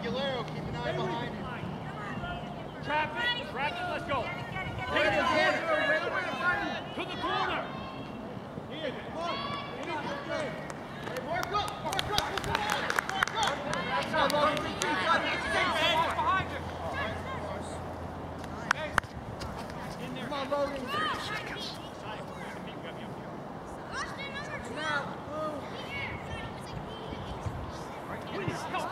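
Children shout and call out across an open field.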